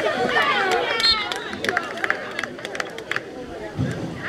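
Football players' helmets and pads clatter together in a tackle.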